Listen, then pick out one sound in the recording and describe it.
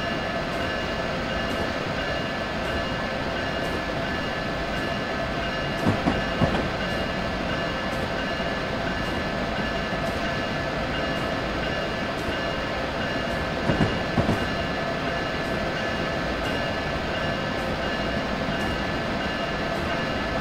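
A train rumbles and hums steadily as it runs along the track.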